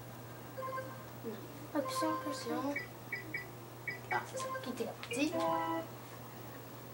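Short electronic menu chimes beep several times.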